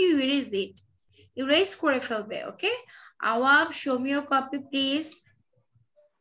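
A young boy speaks with animation over an online call.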